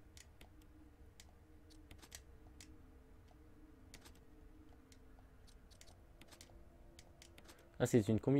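Buttons on a control panel click as they are pressed.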